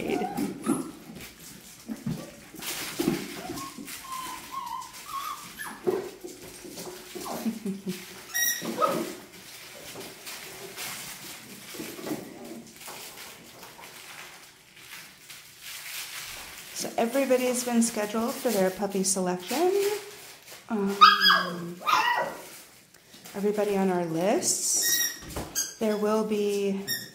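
Puppy paws patter and scrabble on a hard floor.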